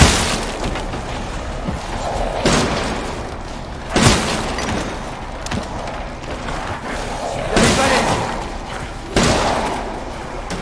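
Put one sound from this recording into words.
A rifle fires single loud shots that ring out in an echoing space.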